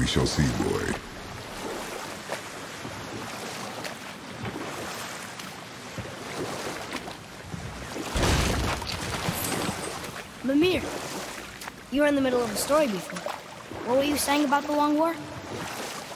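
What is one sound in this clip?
Oars splash and dip in water as a small boat is rowed along.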